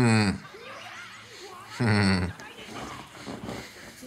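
A young man chuckles softly close to a microphone.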